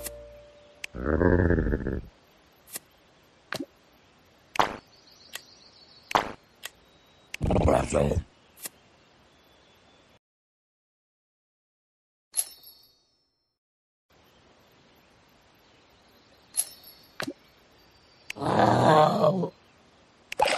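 A cartoon monster lets out a short cry.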